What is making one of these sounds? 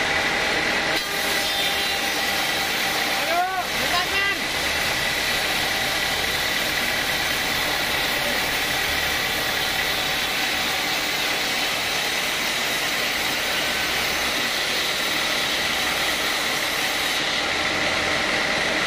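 A band saw whines steadily as it cuts through a log.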